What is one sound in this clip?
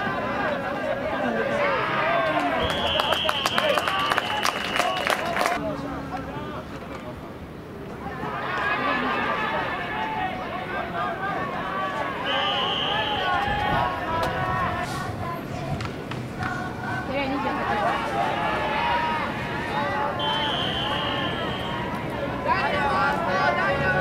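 A crowd of young men shouts and cheers nearby outdoors.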